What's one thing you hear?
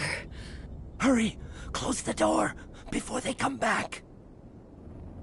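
A man shouts urgently.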